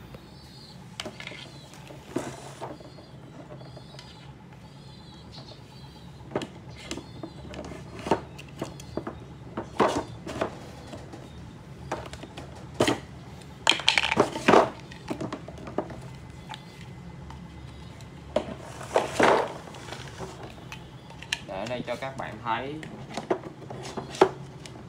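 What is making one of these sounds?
Plastic panels click and knock as they are snapped together.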